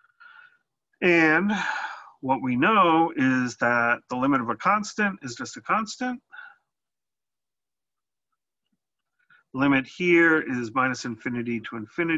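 A middle-aged man speaks calmly and clearly into a close microphone, explaining at a steady pace.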